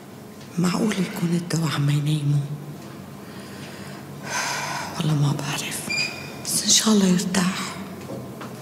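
A woman speaks in a tense, low voice close by.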